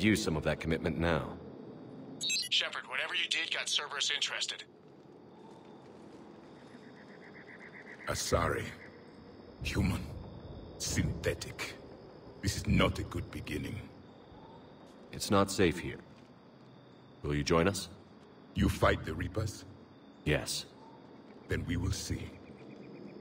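A creature speaks in a deep, raspy voice, close by.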